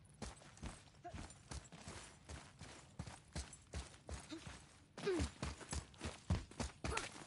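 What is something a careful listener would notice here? Heavy footsteps thud quickly over the ground.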